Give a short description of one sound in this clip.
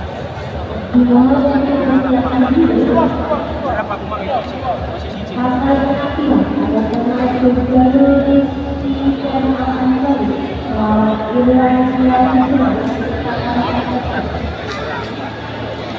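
Men's voices shout and chant loudly together.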